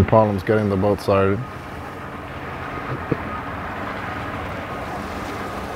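Water laps and splashes against a boat's hull.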